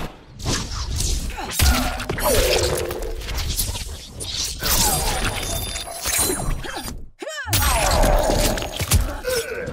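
Blades slash and flesh squelches wetly.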